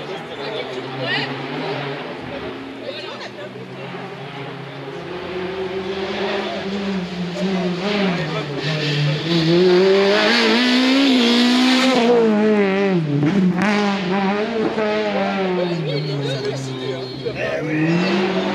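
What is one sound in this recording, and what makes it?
A rally car engine roars and revs hard as the car approaches, passes close by and fades away.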